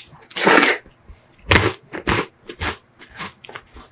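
An ice cream cone crunches as it is bitten.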